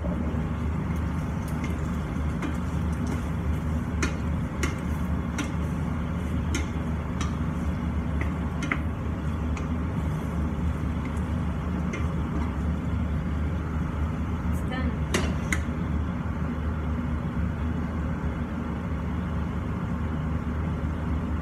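A range hood fan hums steadily.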